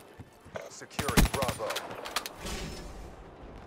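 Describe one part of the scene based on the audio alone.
A video game rifle fires in a burst.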